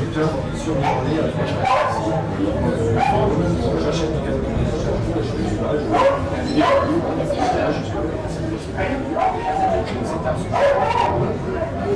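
A middle-aged man answers calmly, close to a microphone.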